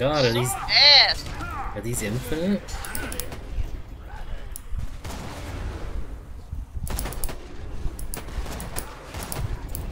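A sniper rifle fires shots in a video game.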